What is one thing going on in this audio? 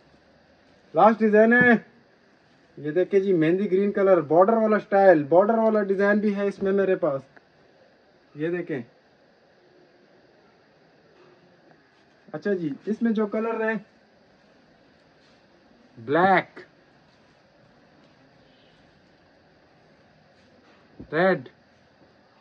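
A young man speaks close by in short bursts with pauses.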